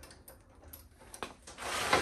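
A hydraulic lift jack is pumped with metal clicks.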